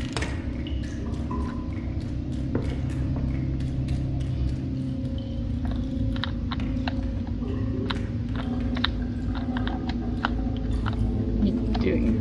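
Small quick footsteps patter across a hard tiled floor.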